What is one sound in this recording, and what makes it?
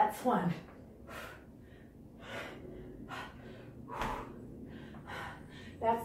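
A young woman exhales sharply and rhythmically, close by.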